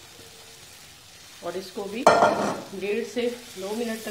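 A wooden spatula stirs food and scrapes in a metal frying pan.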